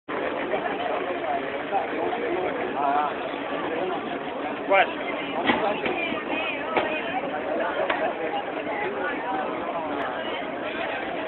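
A crowd of people chatters and calls out nearby, outdoors.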